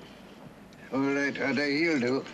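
An elderly man speaks in a low, slow voice nearby.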